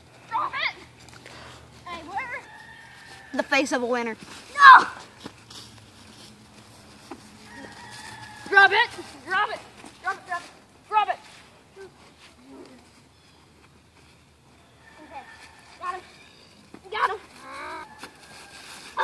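Young boys shout and laugh excitedly close by.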